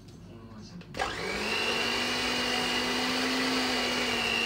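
An electric hand mixer whirs steadily in a bowl.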